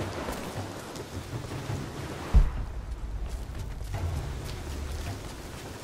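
Footsteps crunch over snow and loose stones.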